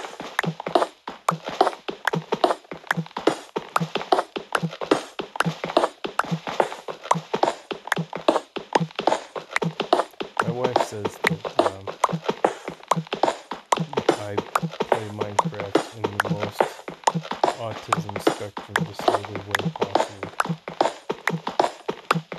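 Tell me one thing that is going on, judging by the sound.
A pickaxe repeatedly digs into stone blocks with quick, crunchy hits.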